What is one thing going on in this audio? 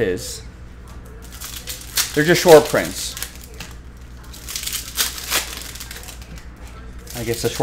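Foil card packs rustle and crinkle as a hand handles them.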